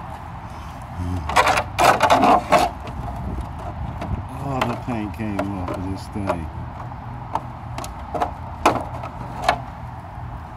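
A hard plastic shell crackles and rattles close by.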